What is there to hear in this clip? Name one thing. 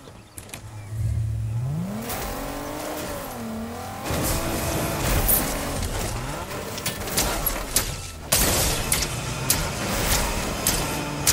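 A car engine revs up and roars as it accelerates.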